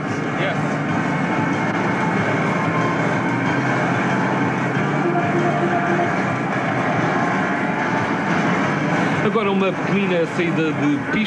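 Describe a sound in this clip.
An arcade game blares loud electronic sounds.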